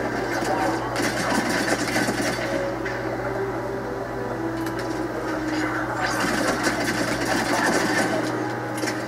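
Gunfire from a video game rattles through a television speaker.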